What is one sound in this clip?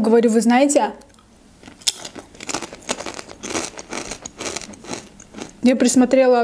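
A young woman crunches snacks close to a microphone.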